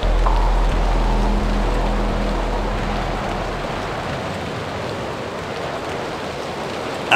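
Footsteps walk steadily on a hard floor.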